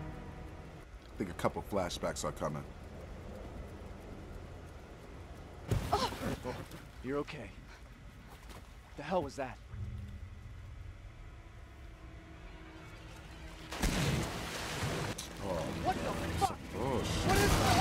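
A man speaks close to a microphone, reacting with animation.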